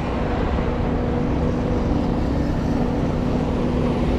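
A motorbike engine hums as it passes nearby.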